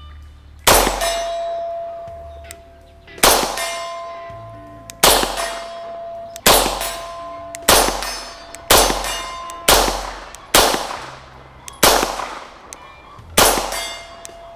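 A steel target rings with a clear, lingering tone after the hits.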